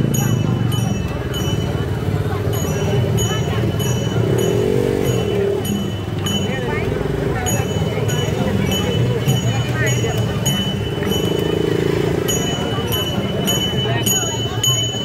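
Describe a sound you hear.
A small cymbal clangs in a fast, steady beat.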